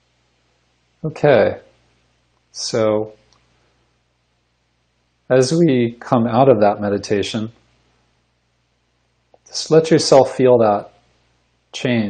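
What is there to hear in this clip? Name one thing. A middle-aged man speaks calmly in short phrases, heard through an online call.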